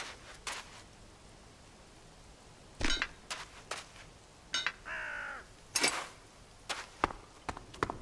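Blows land with sharp hits in a fight.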